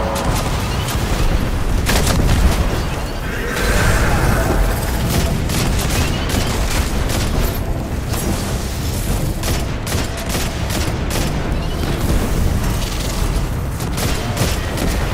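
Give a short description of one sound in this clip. Gunshots fire rapidly, one after another.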